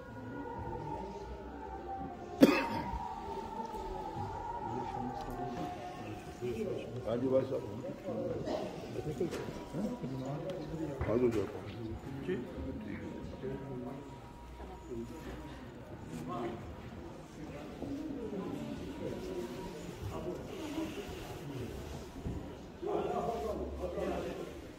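People murmur and talk in a large echoing hall.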